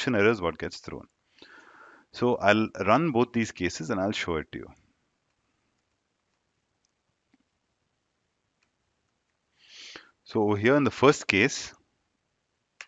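A young man speaks calmly and clearly into a close microphone, pausing between phrases.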